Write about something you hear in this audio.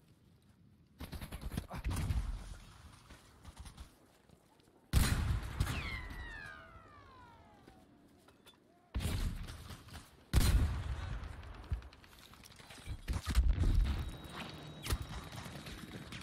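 Gunfire rattles in sharp bursts.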